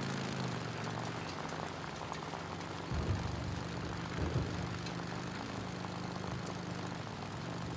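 A motorcycle engine drones as the bike rides along a dirt track.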